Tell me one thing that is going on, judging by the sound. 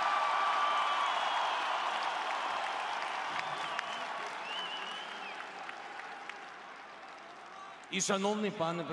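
A large crowd cheers and whistles, then quiets down.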